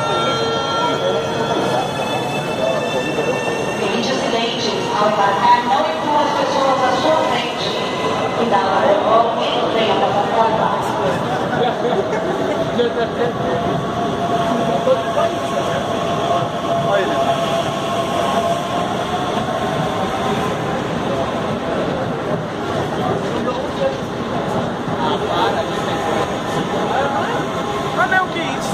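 A train rumbles and screeches along the platform under an echoing roof.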